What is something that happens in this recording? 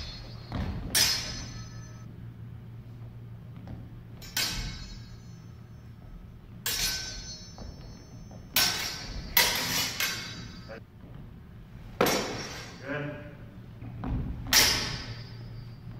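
Practice swords clash and ring sharply in a large echoing hall.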